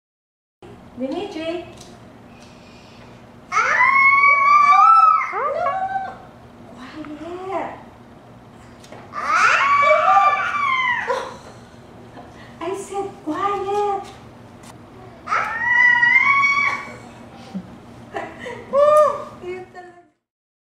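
A toddler babbles and shouts back.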